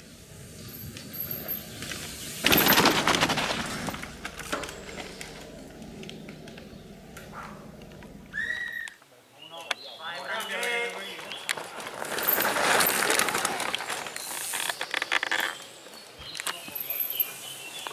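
Mountain bike tyres crunch and skid over a dirt trail as riders pass close by.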